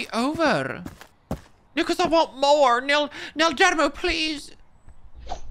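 A woman speaks with animation into a close microphone.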